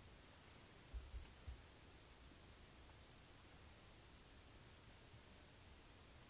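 A deer's hooves rustle softly through dry leaves and grass.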